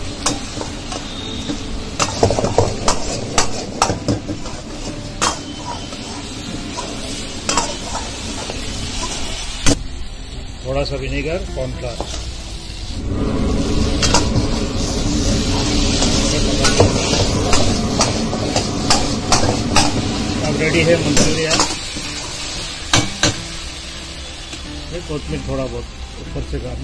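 Food sizzles and spits loudly in a hot pan.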